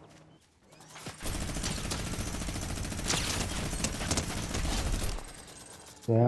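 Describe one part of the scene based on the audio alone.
Rapid gunfire rattles in a fast burst.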